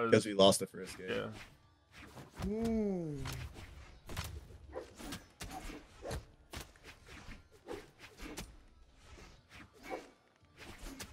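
Game weapons swing and strike with sharp, quick hits.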